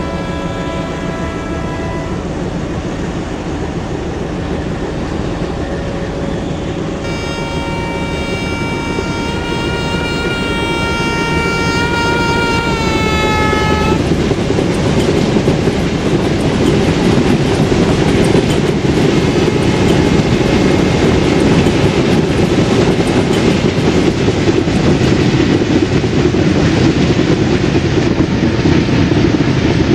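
Train wheels rumble and clatter on the rails, growing louder as another train passes alongside.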